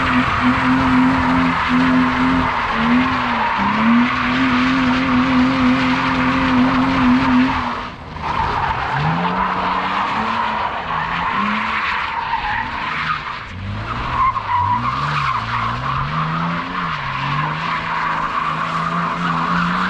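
Tyres squeal as they slide on asphalt.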